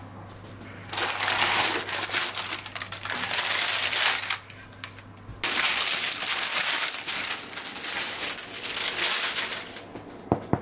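A loaf of bread slides out of a metal tin with a hiss of paper.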